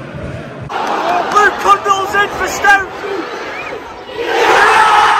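A large stadium crowd chants loudly.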